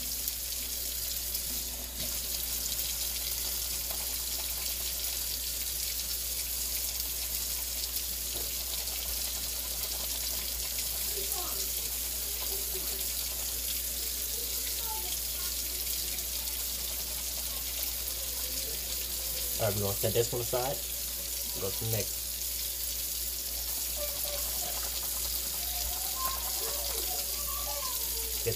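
Hands rub and scrub under running water.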